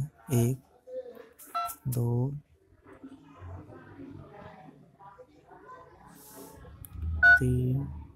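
Phone keys click softly as they are pressed.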